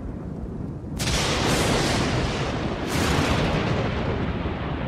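Thunder cracks loudly and rumbles.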